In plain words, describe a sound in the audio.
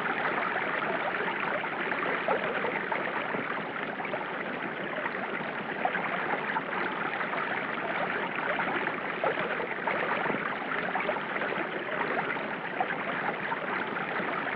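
River water rushes and churns steadily.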